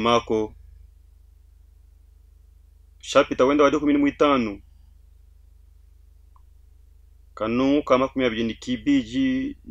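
A man reads out slowly and clearly into a close microphone, with long pauses.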